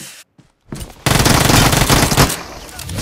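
Gunfire rattles loudly in a video game.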